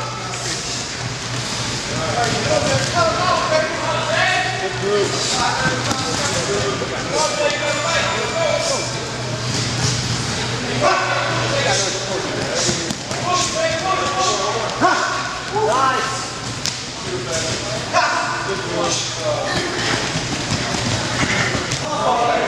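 Several young men shout and call out in a large echoing room.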